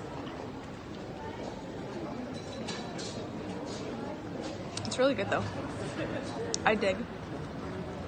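A murmur of passers-by and street noise carries outdoors.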